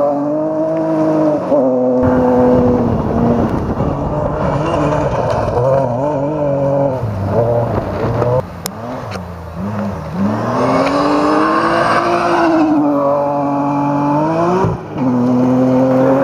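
Gravel sprays and rattles under a car's tyres.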